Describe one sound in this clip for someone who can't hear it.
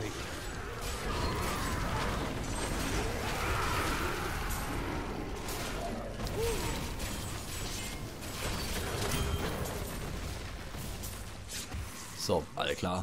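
Spells, blows and explosions crash and boom in a fierce game battle.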